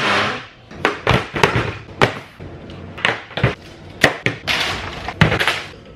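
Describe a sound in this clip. Power tools clatter onto a table.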